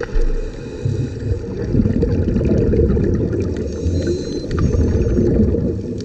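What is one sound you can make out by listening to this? Water churns with a low, muffled rumble underwater.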